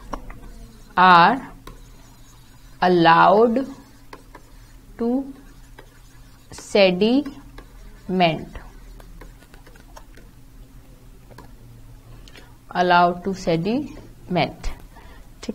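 A young woman speaks calmly into a close microphone, in short bursts with pauses.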